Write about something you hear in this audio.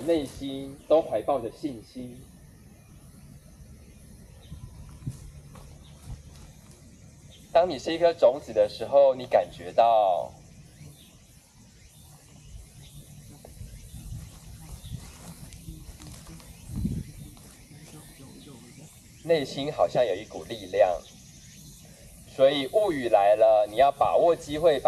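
A woman speaks calmly close by, outdoors.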